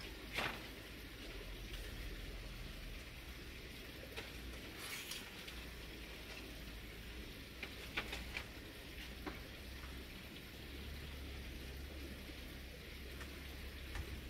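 Woven bamboo rustles and creaks as it is handled.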